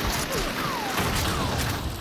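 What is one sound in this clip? Bullets spatter against a wall.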